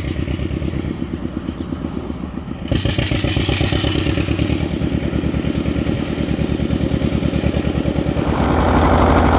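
An old tractor engine chugs nearby with a steady, rapid putter.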